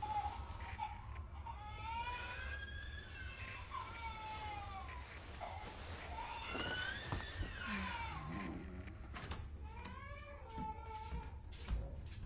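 A young woman moans and whimpers softly nearby.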